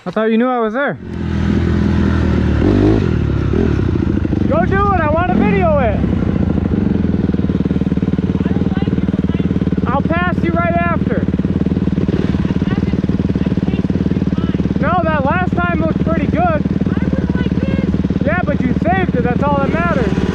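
A dirt bike engine idles steadily up close.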